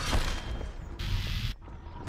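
A ray gun fires with a buzzing hum.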